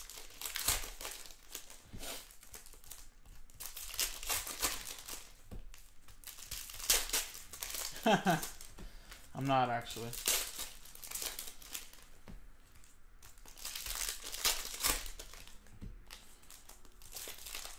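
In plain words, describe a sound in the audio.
Plastic wrapping crinkles and rustles as hands tear open a pack.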